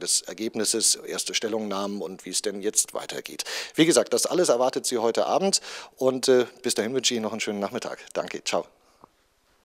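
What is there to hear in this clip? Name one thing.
A man speaks into a microphone close up, with animation.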